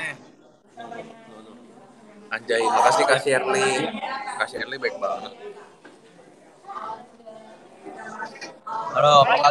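Young men talk and laugh loudly over an online call.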